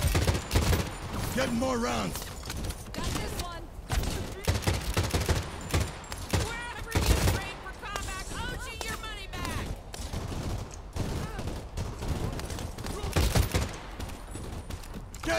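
A rifle fires in quick bursts of sharp shots.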